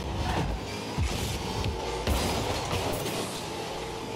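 Two game cars collide with a thud.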